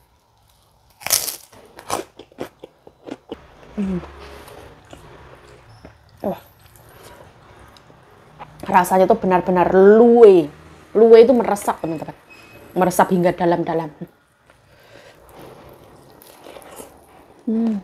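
A young woman chews crunchy fried food close to a microphone.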